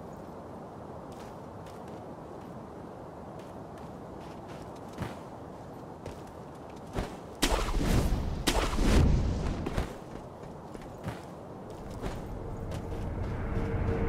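Footsteps crunch on snowy ground.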